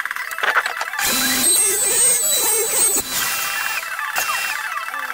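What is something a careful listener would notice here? A handheld router whines loudly as it cuts wood.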